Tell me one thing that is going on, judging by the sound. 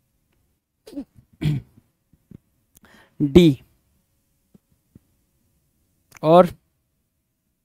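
A man speaks with animation into a headset microphone.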